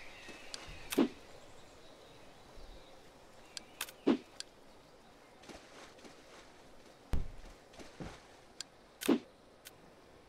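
Short clicks sound as items are picked up.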